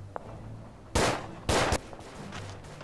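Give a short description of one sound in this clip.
Gunshots crack loudly nearby.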